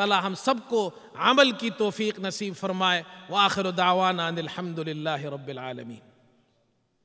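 A man chants loudly into a microphone in a melodic, drawn-out voice.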